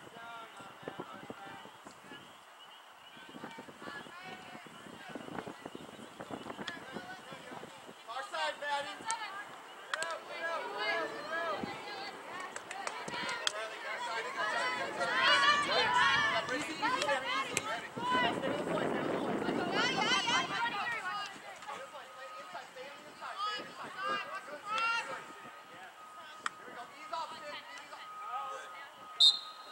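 Spectators on a sideline cheer and shout excitedly outdoors.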